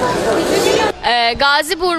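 A young woman speaks into a microphone close by.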